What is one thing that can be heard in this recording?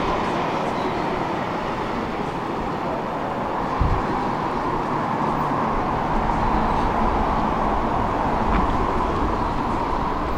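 A bus engine hums steadily as a bus drives nearby.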